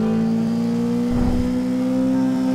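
A car whooshes past close by.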